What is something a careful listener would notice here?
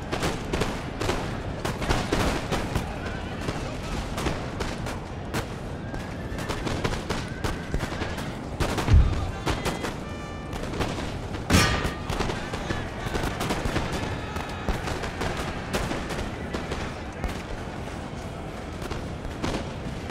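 Muskets crack in scattered, rapid volleys.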